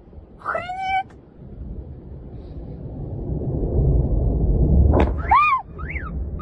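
A huge explosion booms and rumbles in the distance.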